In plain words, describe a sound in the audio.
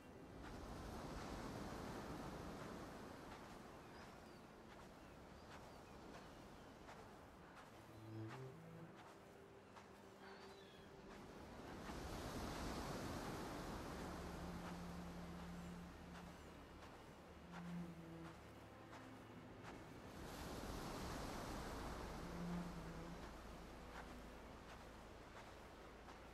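Waves wash onto a shore in slow, swelling surges.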